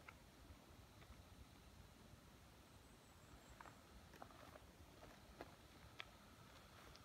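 A unicycle's tyre rolls and rumbles softly on rough asphalt.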